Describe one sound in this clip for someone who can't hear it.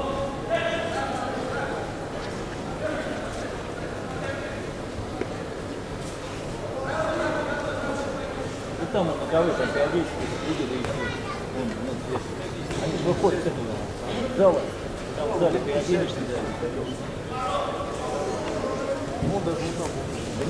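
Men shout and call out from the crowd in a large echoing hall.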